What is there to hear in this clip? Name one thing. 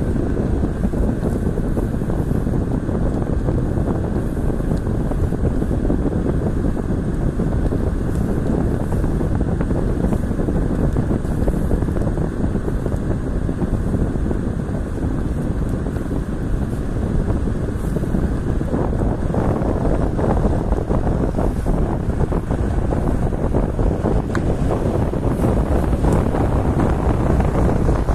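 A car drives along a road with a steady low rumble of engine and tyres.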